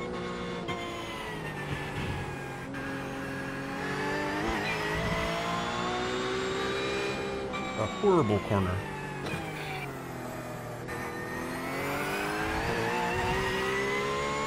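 A race car engine revs up and down through the gears.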